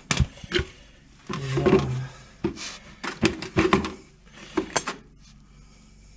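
A plastic bucket knocks and scrapes against metal.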